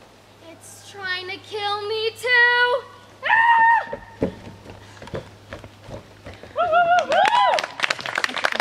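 Young girls sing and shout with excitement nearby, outdoors.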